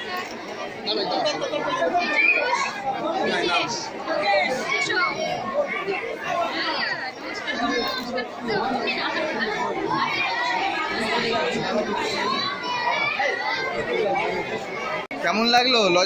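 A crowd of people chatter and talk over each other nearby.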